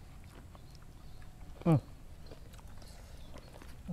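A young man crunches food while chewing.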